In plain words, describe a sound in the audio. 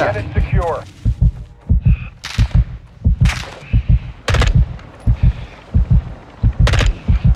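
Footsteps thud quickly on dry ground.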